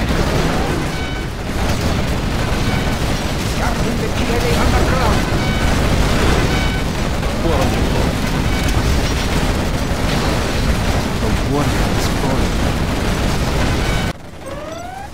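Explosions boom and rumble without pause.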